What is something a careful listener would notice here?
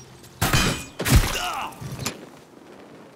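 Fire bursts and crackles on impact.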